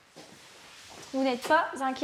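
Shoes shuffle on a tiled floor.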